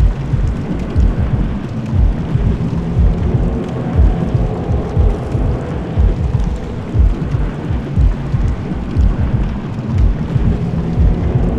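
Heavy armoured footsteps thud and clank up stone stairs.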